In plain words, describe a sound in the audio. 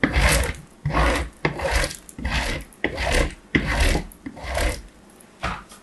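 A soft chalky block scrapes and crumbles against a metal grater in quick rhythmic strokes.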